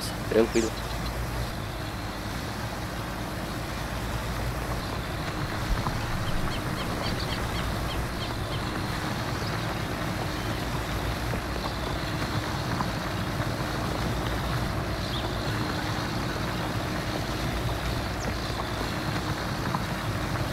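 A tilling implement rattles and scrapes through the soil.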